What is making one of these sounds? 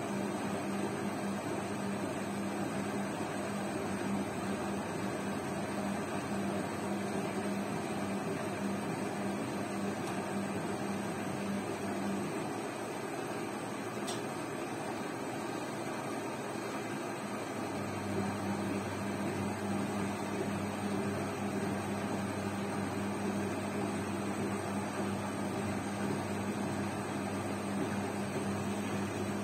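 Laundry tumbles and swishes inside a washing machine drum.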